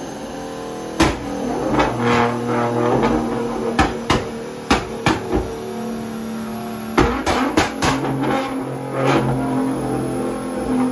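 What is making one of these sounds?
Loud bangs and pops crackle from a car's exhaust.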